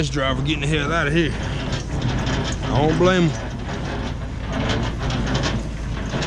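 Metal clanks under a trailer rail.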